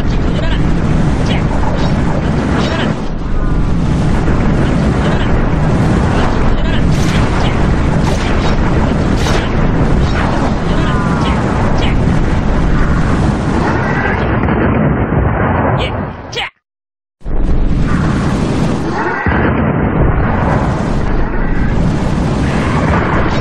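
Swords clash and clang in a busy battle.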